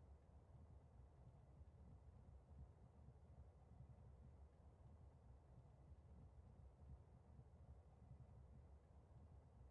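A small propeller plane's engine idles with a low, steady rumble.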